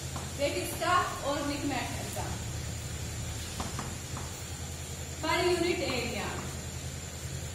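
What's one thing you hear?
A young woman speaks calmly, as if explaining.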